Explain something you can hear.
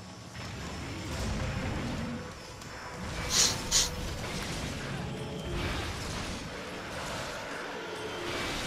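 A large beast's footsteps thud heavily.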